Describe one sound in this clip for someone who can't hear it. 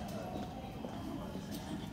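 A finger taps a touchscreen.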